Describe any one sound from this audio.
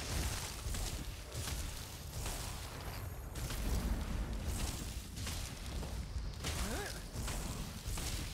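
Fiery spell blasts burst and crackle.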